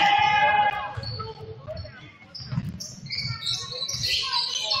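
A basketball bounces with dull thumps.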